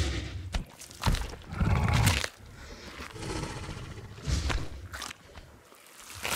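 A large dinosaur tears flesh from a carcass.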